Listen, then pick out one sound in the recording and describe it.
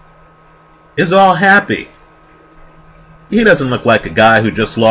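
A man speaks loudly and with animation close to a microphone.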